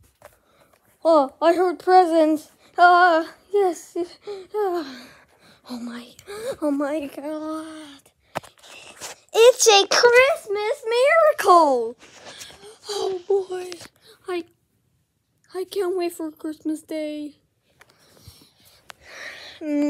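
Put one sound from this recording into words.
A dog whines and howls close by.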